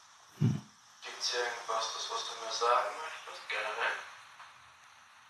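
A young woman speaks softly, very close to the microphone.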